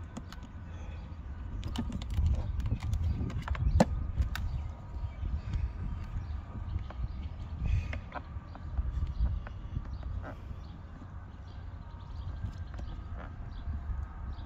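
A plastic case clicks and taps as hands fiddle with its latch.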